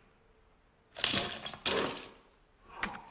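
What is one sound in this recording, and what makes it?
A heavy metal chain rattles against a door.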